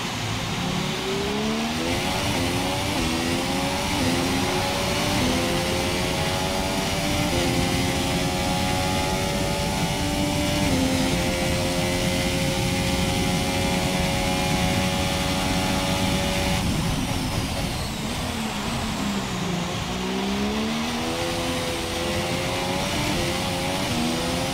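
A racing car engine screams as it accelerates, its pitch climbing and dropping with each gear change.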